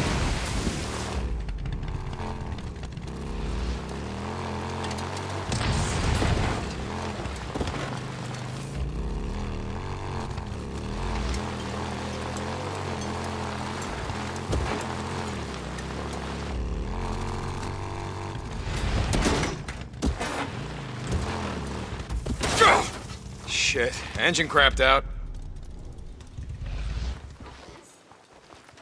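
A motorcycle engine rumbles and revs steadily, then cuts out.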